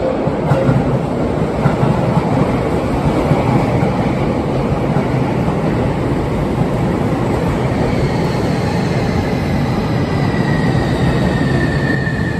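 A train rolls past close by with rumbling wheels and a rising motor whine.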